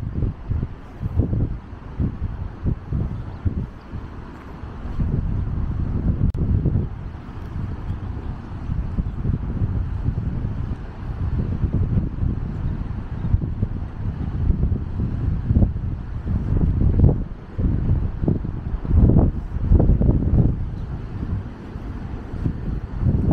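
Wind gusts and rumbles across an open outdoor space.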